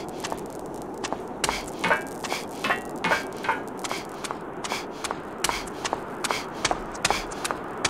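Footsteps clack on hard ground at a steady pace.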